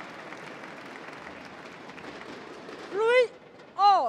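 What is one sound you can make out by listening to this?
Spectators clap in a large echoing hall.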